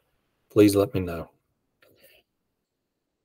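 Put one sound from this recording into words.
A middle-aged man speaks briefly and calmly over an online call.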